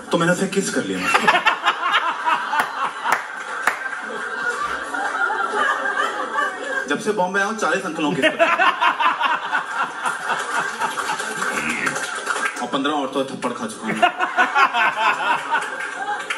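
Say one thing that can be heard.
A middle-aged man laughs loudly and heartily nearby.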